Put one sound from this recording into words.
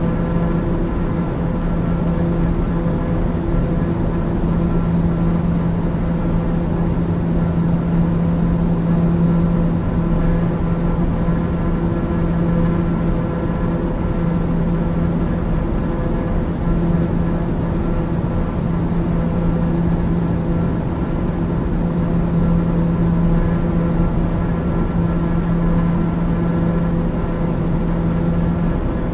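A single-engine turboprop drones in cruise, heard from inside the cockpit.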